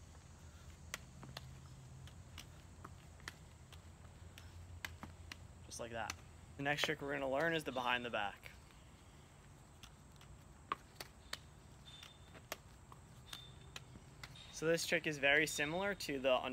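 Balls slap softly into a young man's hands again and again.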